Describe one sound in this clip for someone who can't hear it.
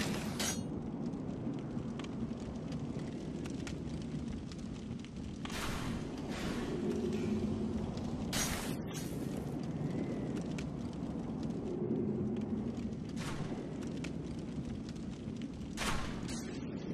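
Armoured footsteps clank and thud quickly on stone.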